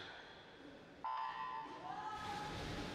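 A starting signal beeps.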